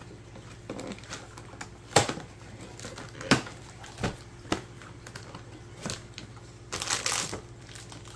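Cardboard box flaps rustle and tap.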